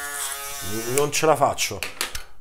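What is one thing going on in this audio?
An electric shaver is tapped against a sink with quick knocks.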